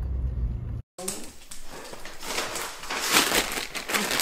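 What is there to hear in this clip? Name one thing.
A plastic mailer bag crinkles and rustles.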